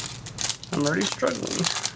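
A plastic wrapper crinkles under handling.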